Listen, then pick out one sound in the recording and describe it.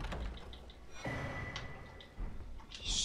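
A short chime rings out as an item is picked up.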